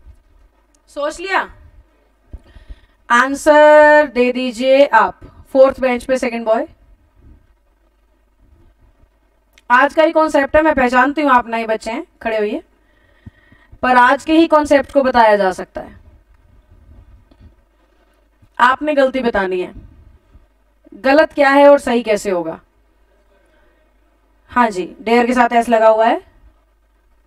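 A young woman speaks clearly and with emphasis, close to a microphone, in short bursts with pauses.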